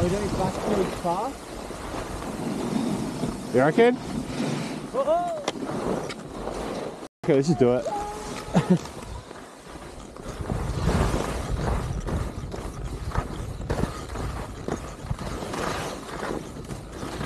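Wind buffets a microphone outdoors.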